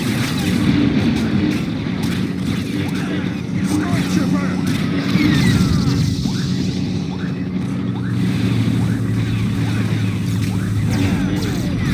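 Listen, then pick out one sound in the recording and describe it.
Laser blasts fire and hiss off a blade in quick bursts.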